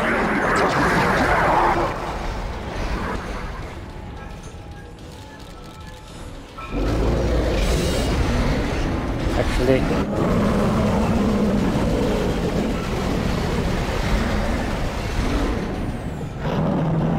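Monsters screech and snarl.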